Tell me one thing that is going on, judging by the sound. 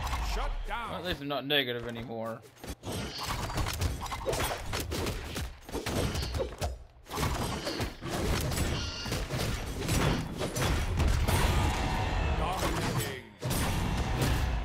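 Video game fighters clash with rapid hits, slashes and blasts.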